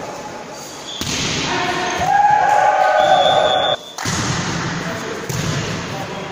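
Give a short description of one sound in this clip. A volleyball is struck hard in a large echoing hall.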